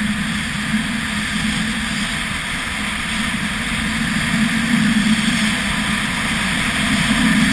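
Skis carve and hiss over groomed snow.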